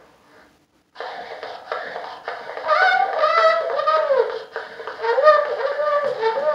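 An old phonograph plays back a scratchy, hissing recorded voice through its horn.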